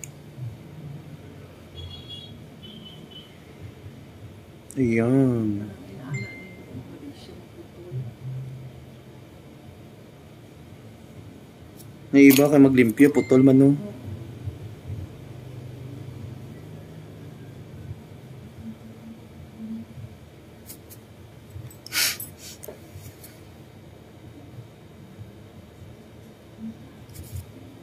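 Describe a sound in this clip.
Nail nippers clip a toenail with small snips.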